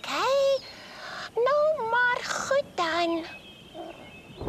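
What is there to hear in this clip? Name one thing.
A high, squeaky cartoon voice sings playfully.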